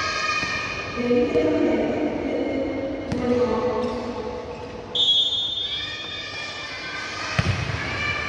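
Young men call out and chatter across a large echoing hall.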